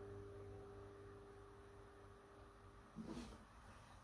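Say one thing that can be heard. A guitar chord rings out and slowly fades.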